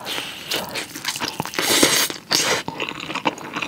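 A young woman bites into a soft rolled omelette close to a microphone.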